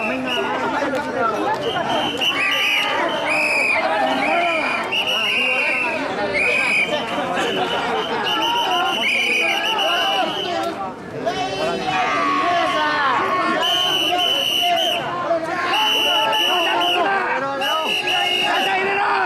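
A large crowd of men chants loudly in rhythm outdoors.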